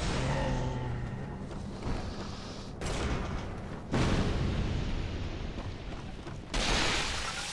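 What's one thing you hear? Footsteps run over wooden planks and stone.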